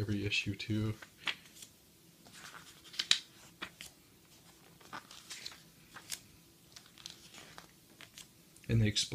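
Glossy book pages rustle and flip as they are turned.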